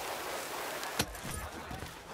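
A heavy body lands with a dull thud.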